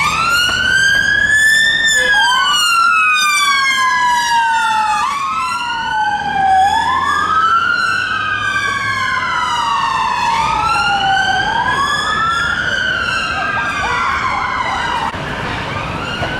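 Traffic rumbles along the street.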